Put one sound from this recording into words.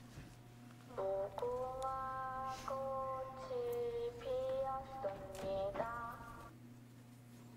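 A girl's voice sings a slow, high chant.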